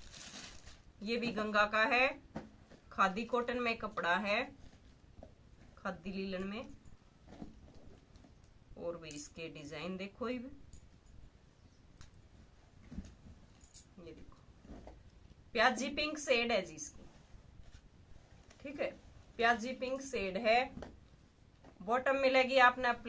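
A woman speaks calmly and clearly close by.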